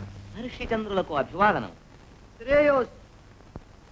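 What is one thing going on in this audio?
A man speaks with emotion, heard through an old, hissy film recording.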